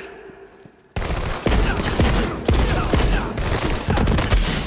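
A laser weapon fires in rapid crackling bursts.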